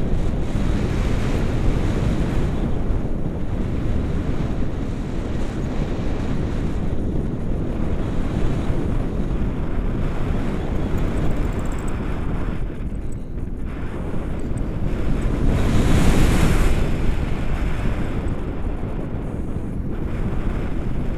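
Strong wind rushes and buffets past, rising and falling in gusts.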